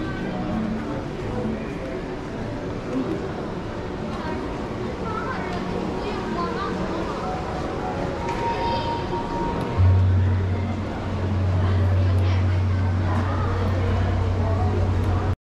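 A crowd of people chatter faintly in a large echoing hall.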